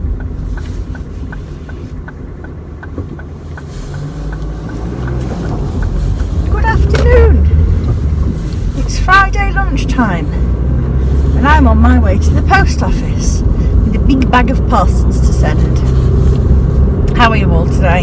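A car engine hums low and steady, growing louder as the car drives off.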